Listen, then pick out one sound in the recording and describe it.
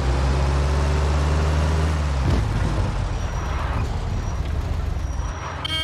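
An old car engine hums steadily as the car drives along.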